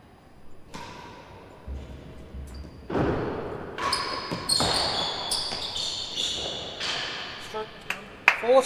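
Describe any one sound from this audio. A ball thuds against the walls and floor.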